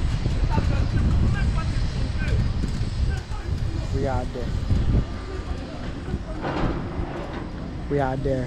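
A man talks calmly close to the microphone.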